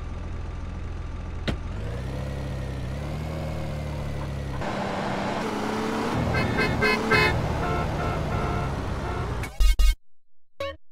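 A car engine hums and revs as a vehicle drives.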